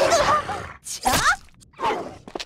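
A dog snarls fiercely.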